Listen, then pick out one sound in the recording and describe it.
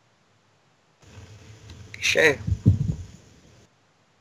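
A teenage boy speaks briefly through an online call.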